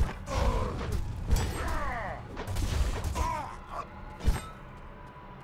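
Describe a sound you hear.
Swords strike with sharp hits.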